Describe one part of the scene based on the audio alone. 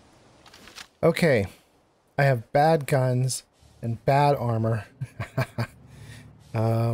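An older man talks with animation, close to a microphone.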